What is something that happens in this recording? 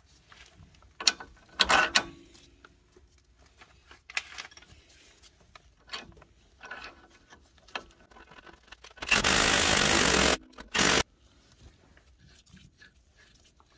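Metal tools clink and knock against car parts up close.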